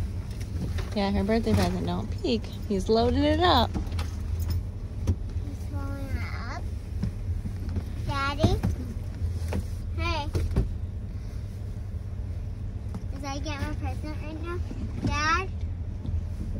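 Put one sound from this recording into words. Children sing high and with animation, close by.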